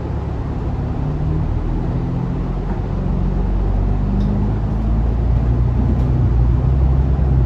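A bus engine revs up and grows louder as the bus pulls away.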